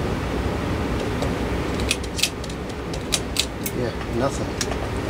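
A screwdriver clicks and scrapes against a metal fan housing.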